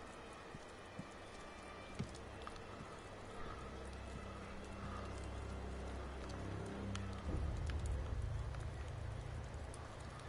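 Soft footsteps creep across roof tiles.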